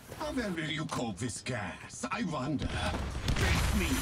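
A door is pushed open.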